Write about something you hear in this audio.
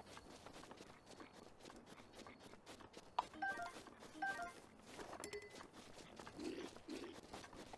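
Footsteps patter on grass.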